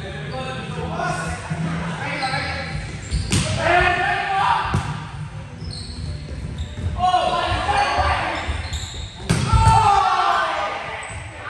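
Young men shout and call out to each other across an echoing hall.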